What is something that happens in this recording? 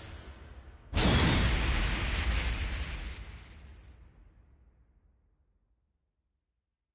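A heavy impact booms and slowly dies away.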